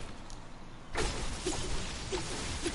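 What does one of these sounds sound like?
A pickaxe strikes with a sharp crack.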